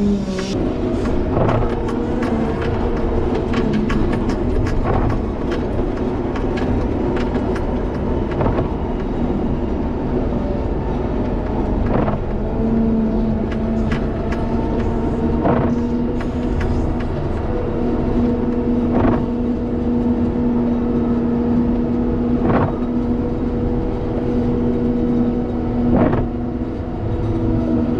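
A snow plow blade scrapes and pushes snow.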